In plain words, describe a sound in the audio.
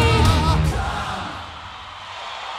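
A rock band plays loudly, then stops.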